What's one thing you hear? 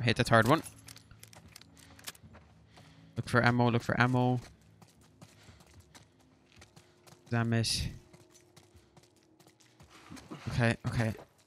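Footsteps tread softly on a gritty floor.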